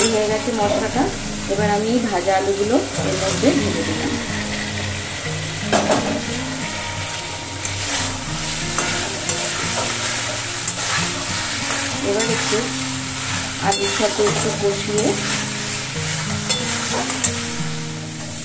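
A spatula scrapes against a metal pan.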